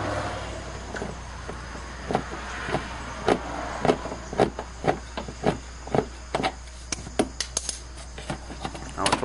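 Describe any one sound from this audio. A ratchet wrench clicks in short bursts close by.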